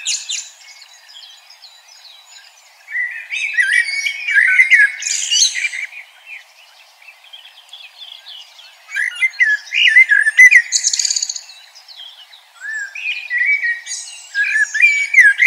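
A small bird chirps and trills in quick bursts, close by.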